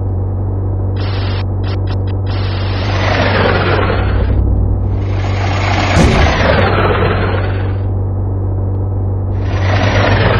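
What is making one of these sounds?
Tyres hiss and rush over a road in bursts.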